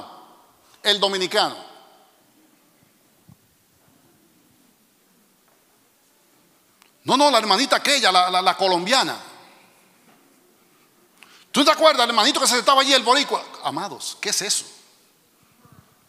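A man speaks with animation through a microphone in a large echoing hall, pausing between phrases.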